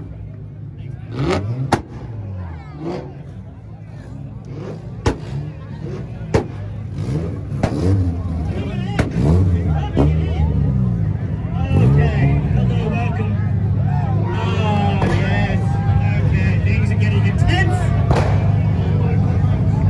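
A car engine idles and revs loudly nearby.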